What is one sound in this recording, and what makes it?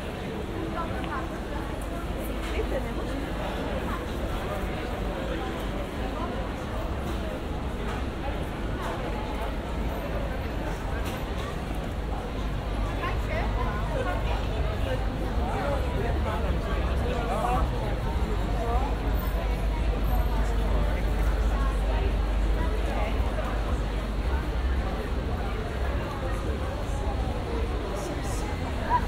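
A crowd of people chatters in a busy street outdoors.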